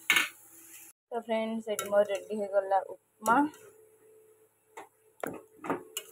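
A spatula stirs food in a metal pan.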